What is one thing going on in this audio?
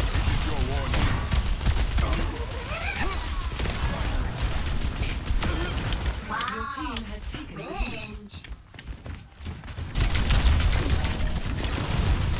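Guns fire rapid bursts of shots in a game.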